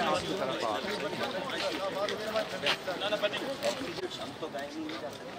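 Several men talk at once in a crowd, close by, outdoors.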